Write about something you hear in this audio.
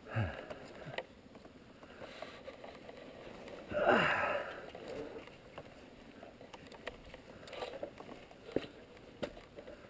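A motorcycle engine idles and revs unevenly.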